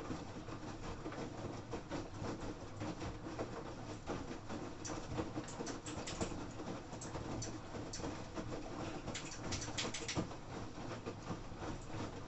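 A washing machine drum turns with a steady hum.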